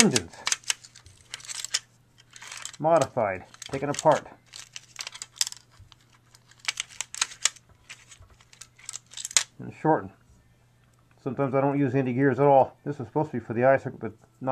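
Small metal parts click and rattle as they are handled.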